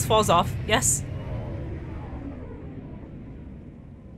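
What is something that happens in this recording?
A spacecraft's engines roar as it lifts off.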